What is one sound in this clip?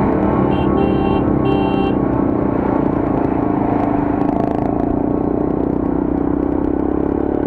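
Large trucks rumble past nearby.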